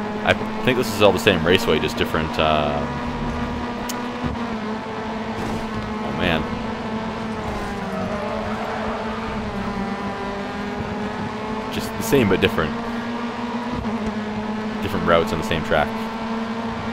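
Racing car engines whine as they pass close by.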